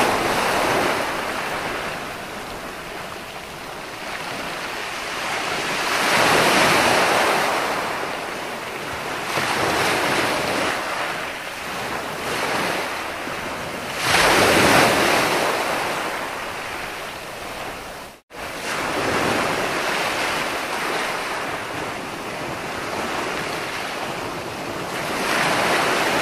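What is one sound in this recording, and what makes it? Waves crash and wash up onto a beach in steady surges.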